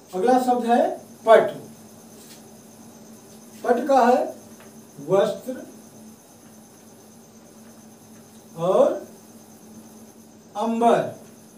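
A middle-aged man speaks nearby in short phrases, in a calm, teaching voice.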